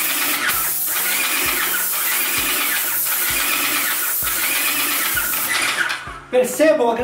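A spray gun hisses steadily as paint is sprayed.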